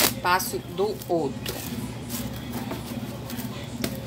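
Plastic wrap crinkles as it is stretched over a bowl.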